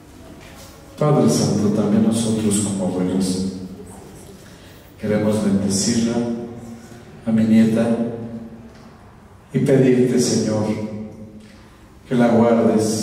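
An older man speaks slowly and warmly into a microphone over a loudspeaker.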